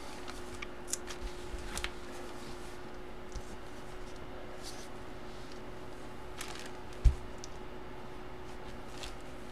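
Fabric rustles as a jersey is handled and unfolded.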